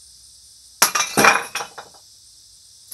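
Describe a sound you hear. A man strikes and snaps a board with loud cracks.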